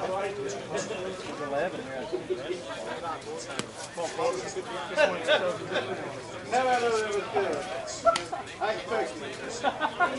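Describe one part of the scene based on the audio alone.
Several men talk and call out nearby, outdoors.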